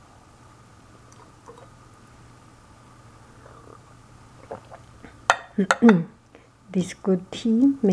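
A small glass clinks as it is set down on a ceramic plate.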